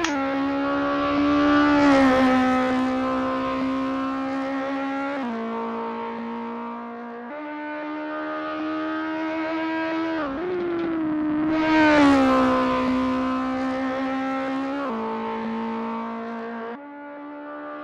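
A racing car engine revs loudly, rising and dropping in pitch as the gears shift.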